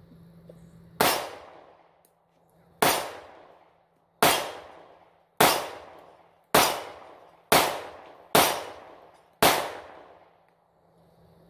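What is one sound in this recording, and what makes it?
A pistol fires several sharp shots outdoors, each echoing through the woods.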